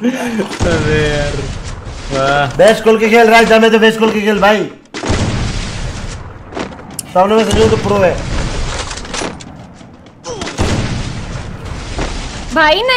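A man talks excitedly and loudly into a close microphone.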